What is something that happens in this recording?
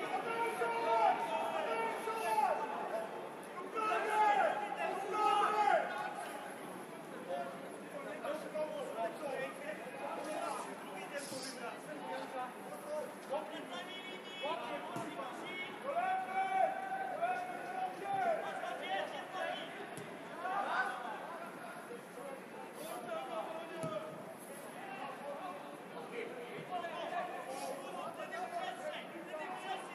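Male players shout to each other in the distance across an outdoor pitch.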